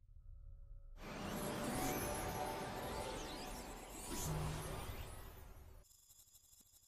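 A shimmering magical burst crackles and whooshes.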